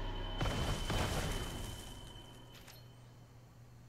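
A magical game sound effect bursts and shimmers, then fades.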